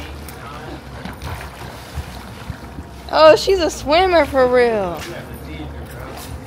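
Water splashes gently as a person swims.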